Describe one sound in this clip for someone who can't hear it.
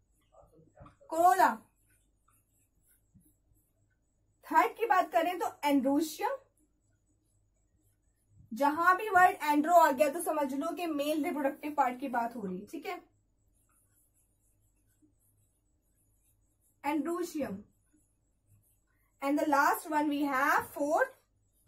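A young woman speaks calmly and clearly close to a microphone, in short bursts with pauses.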